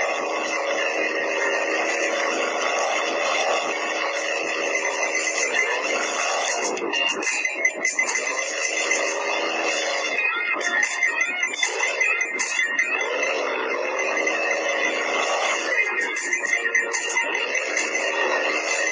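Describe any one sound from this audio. A cartoon truck engine drones and revs steadily.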